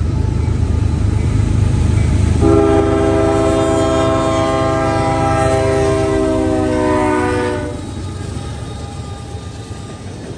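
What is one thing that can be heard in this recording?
A diesel locomotive rumbles closer and passes loudly.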